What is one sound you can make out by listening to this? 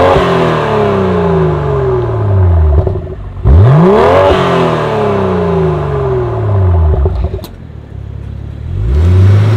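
A car engine revs hard and drops again with a loud exhaust roar.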